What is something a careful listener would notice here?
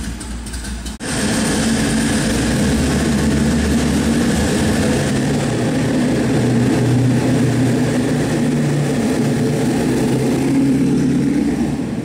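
A car engine rumbles as the car drives slowly forward.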